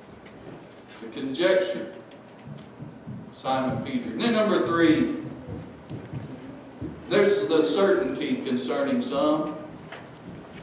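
A middle-aged man speaks slowly and earnestly into a microphone, with pauses between phrases.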